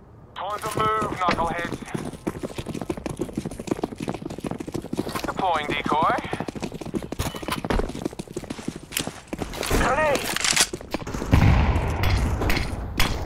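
Quick footsteps run over stone.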